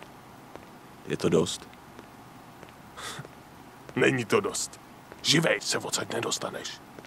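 A young woman speaks quietly, close by.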